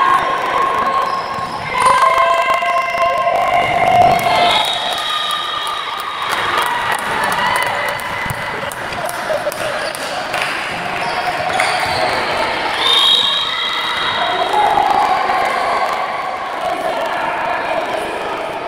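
Sneakers squeak sharply on a hall floor.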